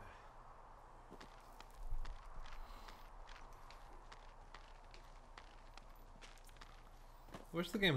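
A rope creaks as someone climbs down it.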